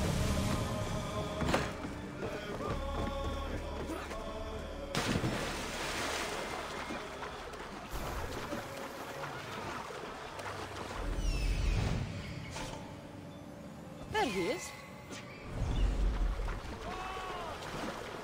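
Waves wash onto a shore.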